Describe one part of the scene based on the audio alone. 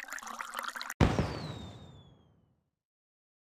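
A burst of confetti pops with a bang.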